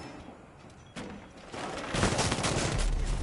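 A wooden barricade bursts apart with a loud splintering crash.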